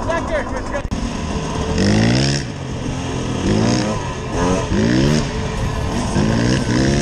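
A dirt bike engine revs up and down repeatedly while riding.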